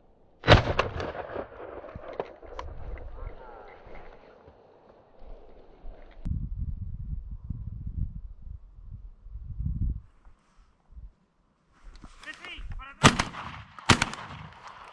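A shotgun fires outdoors.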